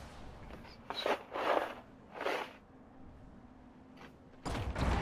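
Soft electronic whooshes sound as menu options are selected.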